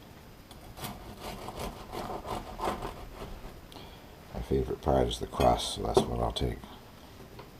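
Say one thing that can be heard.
A knife saws through a crusty loaf with a crunchy rasp.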